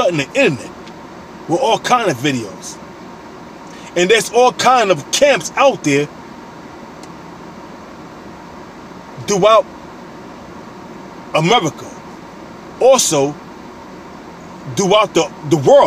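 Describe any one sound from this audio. A man speaks close by in bursts, with pauses between.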